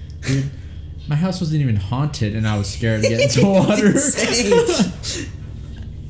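Two young men laugh loudly together.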